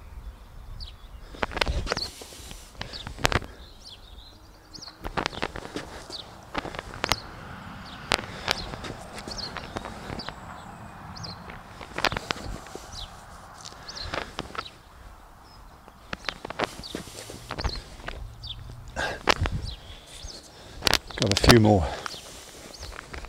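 A man scrapes and pats soil by hand with soft knocks and thuds.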